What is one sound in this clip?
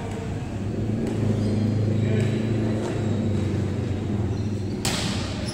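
Men call out to each other in an echoing hall.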